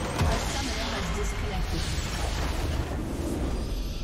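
Game spell effects crash and whoosh loudly.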